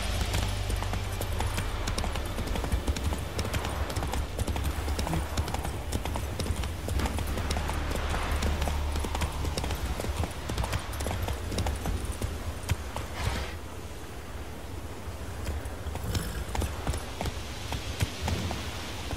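Horse hooves thud rapidly on a dirt path.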